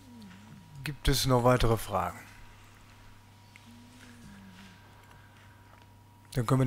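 A middle-aged man speaks briefly into a microphone in a calm voice.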